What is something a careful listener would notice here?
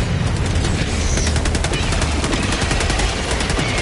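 A rapid-fire gun shoots in quick bursts.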